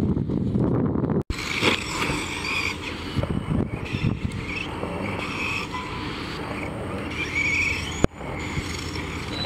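A small electric motor whines as a toy car speeds over dirt.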